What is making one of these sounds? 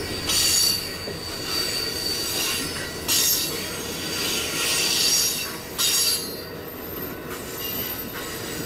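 A passenger train rolls past close by, its wheels rumbling and clacking on the rails.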